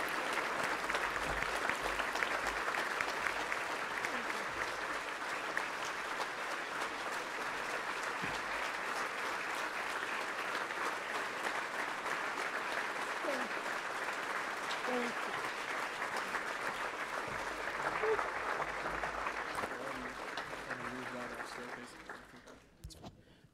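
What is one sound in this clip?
A large crowd applauds loudly and steadily in a big hall, then fades out.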